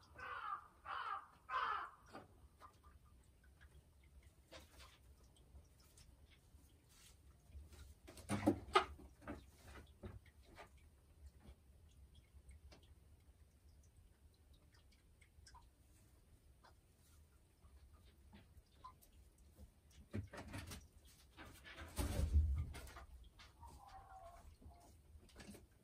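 A hen clucks softly nearby.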